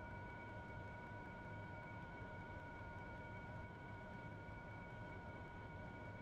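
A jet's turbofan engine whines steadily, heard from inside the cockpit.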